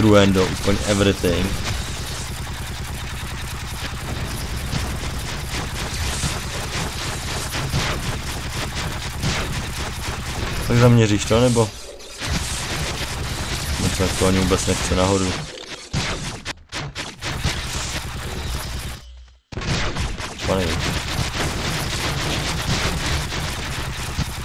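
Rapid gunfire crackles in short bursts.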